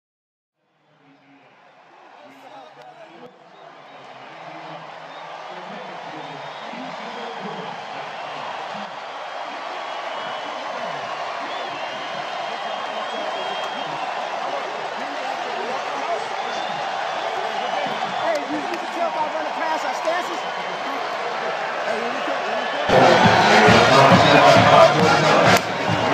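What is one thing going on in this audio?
A large stadium crowd cheers and roars outdoors.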